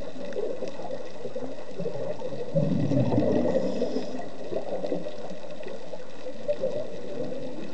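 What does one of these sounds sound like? A muffled underwater rumble and burble goes on throughout.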